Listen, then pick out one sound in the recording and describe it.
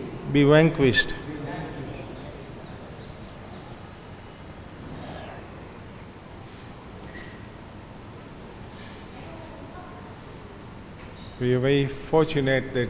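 An elderly man speaks slowly into a microphone, heard through a loudspeaker.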